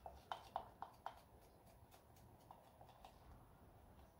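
Gloved fingers tap and squelch on sticky wet resin.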